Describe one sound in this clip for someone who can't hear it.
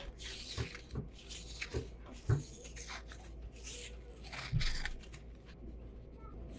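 Sticky tape peels off a roll with a crackling rip.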